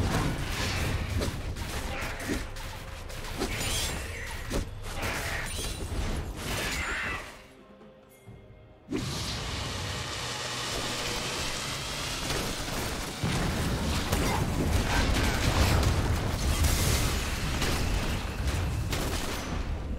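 Magic spells crackle and clash in a fight.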